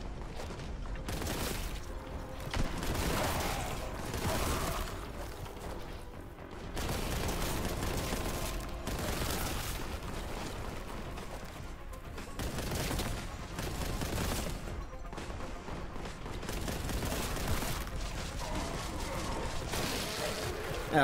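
Rapid gunfire blasts in a video game.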